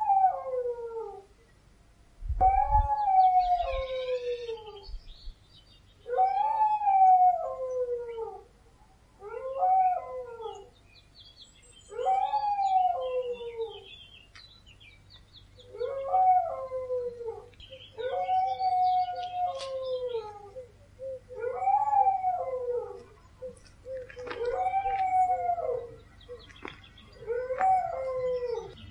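Dogs howl in long, rising and falling wails, one after another.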